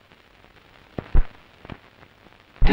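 A man sits down heavily on a sofa with a soft thump.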